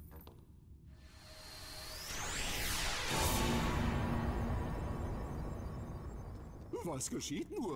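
A deep rushing whoosh swells up loudly and slowly fades.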